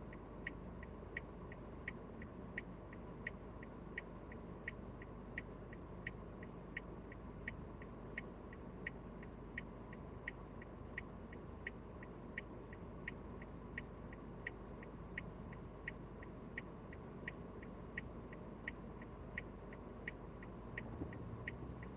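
A car engine idles quietly.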